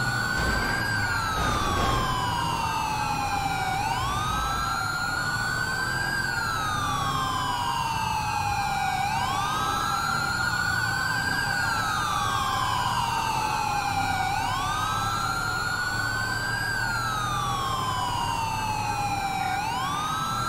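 A police siren wails steadily, rising and falling slowly.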